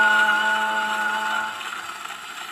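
An old gramophone plays a tinny musical note that fades out.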